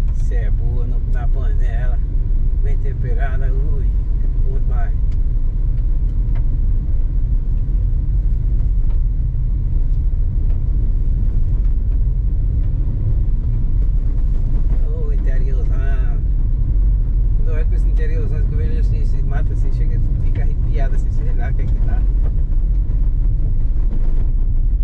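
Tyres crunch and rumble over a dirt road.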